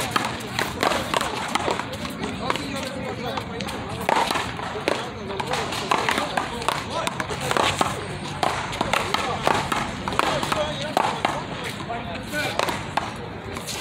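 A ball smacks against a wall and off wooden paddles, echoing sharply.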